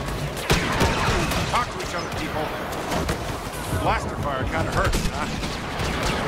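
A laser sword hums and swooshes through the air.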